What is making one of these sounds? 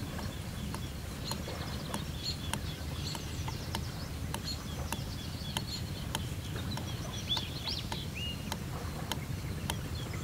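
A metal spoon clinks against a mug while stirring a drink.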